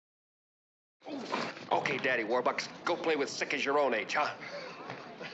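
A man shouts angrily during a scuffle.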